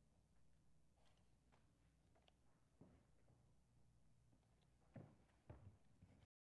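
A man's footsteps knock on a hard floor.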